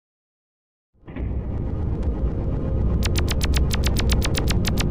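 Eerie video game music with a deep drone starts and plays steadily.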